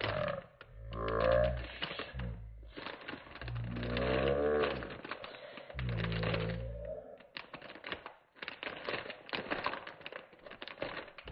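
Plastic wrap crinkles and rustles under hands.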